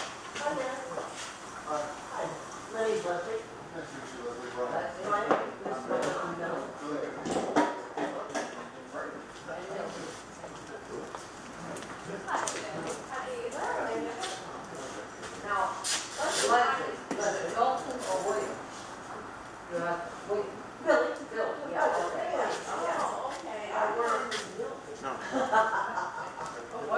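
A man talks nearby in a relaxed, conversational way.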